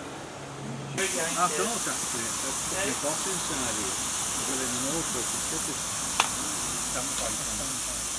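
Steam hisses steadily from a small locomotive.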